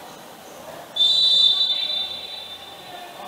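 A referee's whistle blows sharply in a large echoing hall.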